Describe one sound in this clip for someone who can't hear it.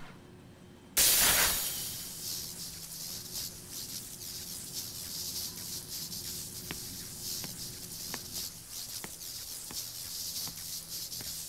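Energy fields hum and crackle steadily.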